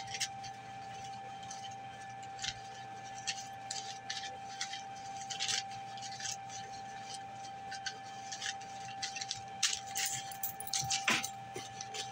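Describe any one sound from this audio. Paper bills rustle and crinkle as they are counted by hand.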